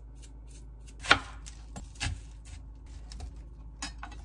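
A knife chops through an onion onto a cutting board.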